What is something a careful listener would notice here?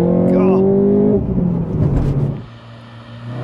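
A car engine revs hard close by.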